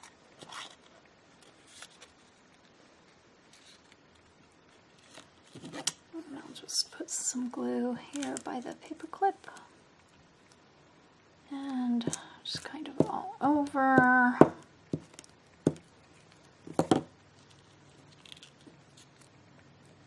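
Paper and card rustle and tap softly as hands handle them.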